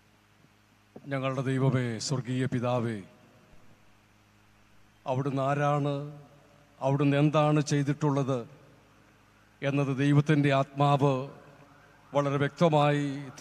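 An elderly man speaks calmly through a microphone and loudspeakers, in short phrases with pauses.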